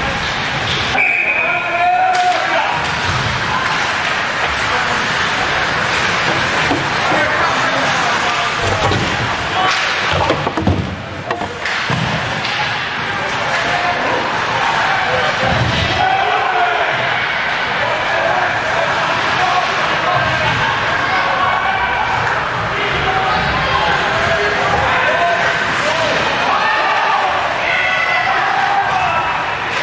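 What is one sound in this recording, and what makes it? A crowd of spectators cheers and shouts throughout, echoing in a large arena.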